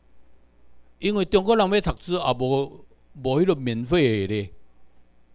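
An elderly man speaks calmly into a microphone, heard through a loudspeaker.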